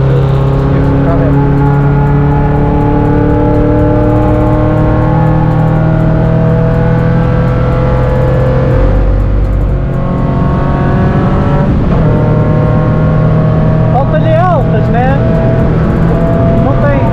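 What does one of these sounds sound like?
A car engine roars loudly from inside the cabin, revving up and down through the gears.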